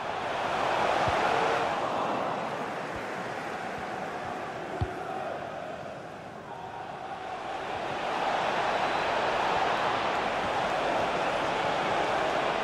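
A large stadium crowd roars and chants steadily, swelling and fading.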